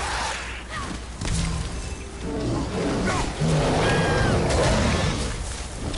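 Fiery blasts burst with a whoosh.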